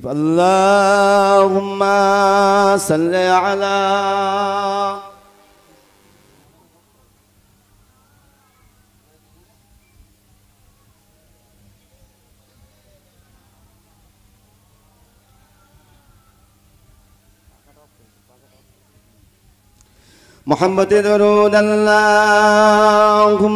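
A man chants loudly in long, drawn-out notes through a microphone and loudspeakers.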